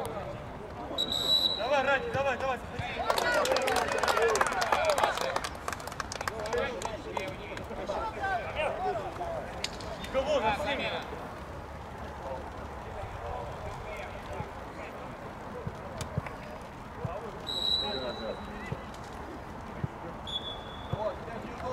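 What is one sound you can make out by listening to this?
A referee's whistle blows in short sharp blasts.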